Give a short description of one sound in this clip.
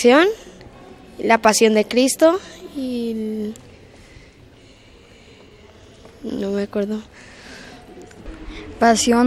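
A young boy speaks into a microphone close up, in short bursts with pauses.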